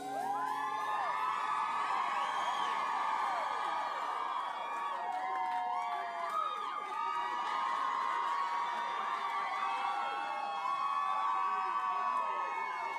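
A large crowd cheers and screams loudly.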